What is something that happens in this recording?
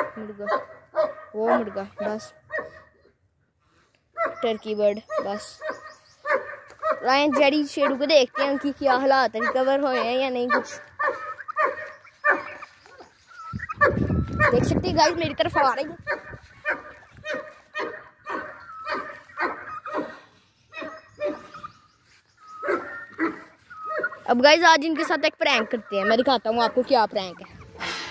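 Chickens cluck and squawk nearby.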